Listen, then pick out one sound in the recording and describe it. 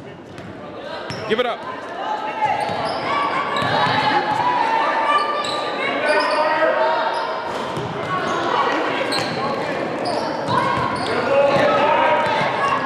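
Boys and spectators shout and chatter in an echoing gym.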